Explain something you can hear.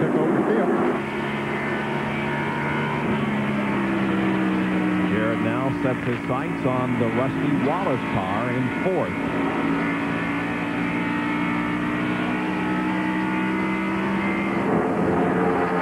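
A race car engine roars steadily at high speed, heard from on board.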